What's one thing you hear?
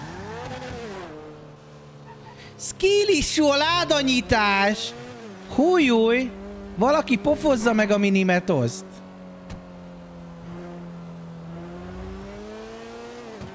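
A car engine hums steadily and revs as it speeds up.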